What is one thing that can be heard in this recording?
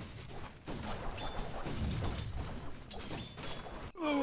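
Fantasy battle sound effects clash and zap in quick bursts.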